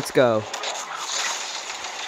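A lightsaber clashes against armour with crackling sparks.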